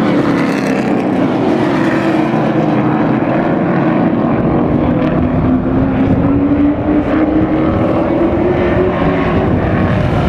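V8 stock cars roar at full throttle around a dirt oval.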